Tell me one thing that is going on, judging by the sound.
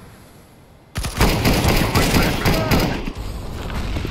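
Rifle shots fire in a loud, rapid burst.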